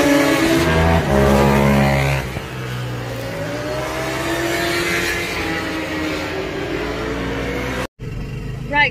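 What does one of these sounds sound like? A motorcycle engine roars past and fades into the distance.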